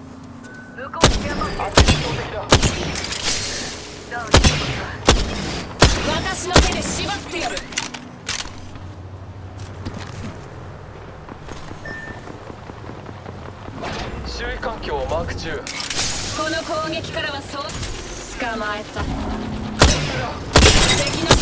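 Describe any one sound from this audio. A rifle fires sharp, loud shots in bursts.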